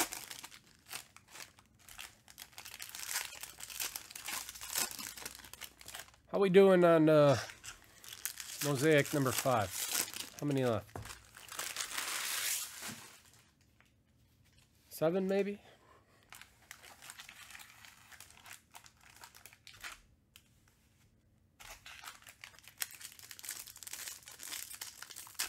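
A foil wrapper crinkles and tears in the hands.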